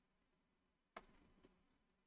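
A wooden game piece clacks onto a board.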